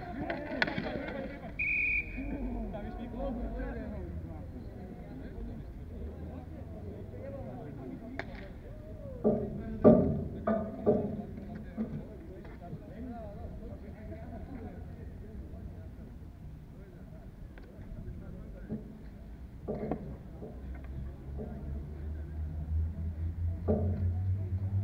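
Hockey sticks clack and scrape on a hard outdoor court.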